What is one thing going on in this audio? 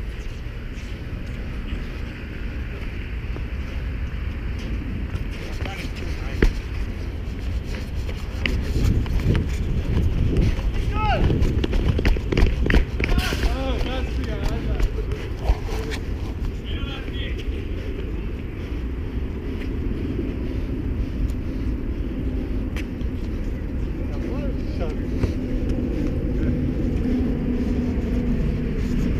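Skate wheels roll and rumble on pavement.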